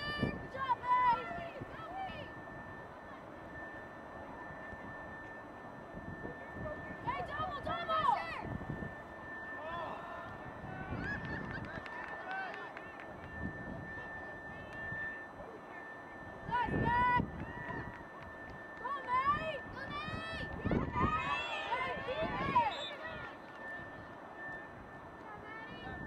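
Young women shout and call out across an open field.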